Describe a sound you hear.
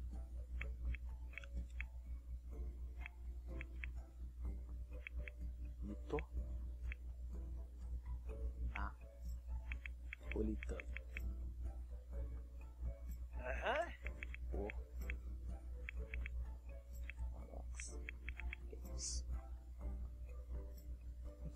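Keys click rapidly on a keyboard.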